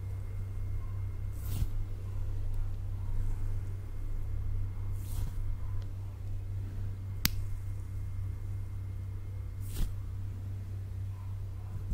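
Hands rub and brush against a microphone close up.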